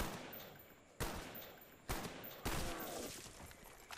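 A gun fires several sharp shots.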